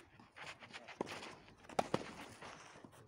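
Tennis balls are struck with rackets outdoors.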